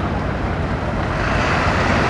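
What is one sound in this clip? A bus drives past on a street.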